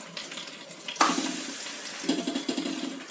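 A flatbread sizzles on a hot pan.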